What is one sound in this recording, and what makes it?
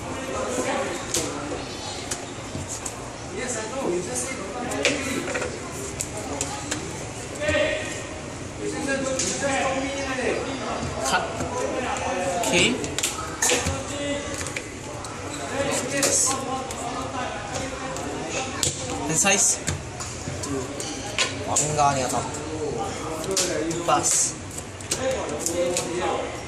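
Playing cards slap and slide on a soft mat.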